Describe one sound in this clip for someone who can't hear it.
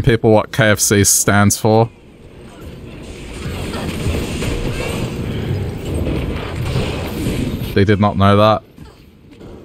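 Magic blasts hiss and roar during a fight with monsters.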